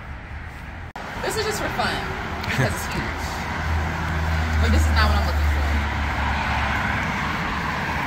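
A woman speaks close by, slightly muffled.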